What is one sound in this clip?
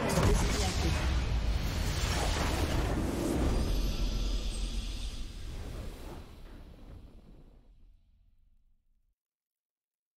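A triumphant game victory fanfare swells and then fades away.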